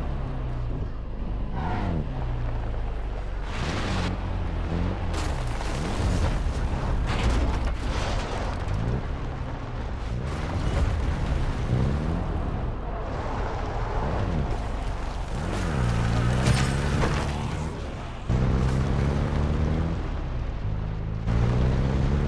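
A jeep engine hums and revs up and down as it drives over rough ground.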